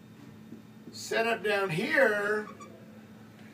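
An older man speaks up close, with emphasis.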